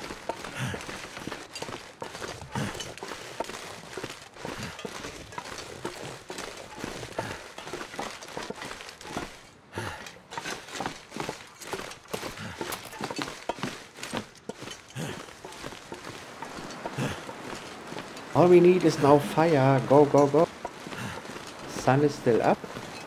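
Footsteps thud steadily on wooden boards.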